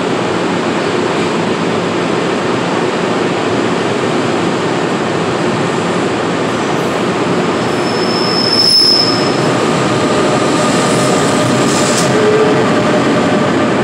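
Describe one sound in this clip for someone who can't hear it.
A train rumbles and clatters past at speed in an echoing underground station.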